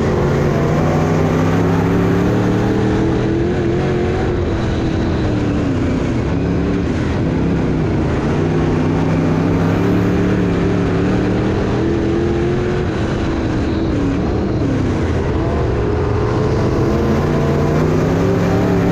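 A race car engine roars loudly from close by, rising and falling in pitch as it revs.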